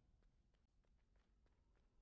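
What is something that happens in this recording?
A blade swishes through the air.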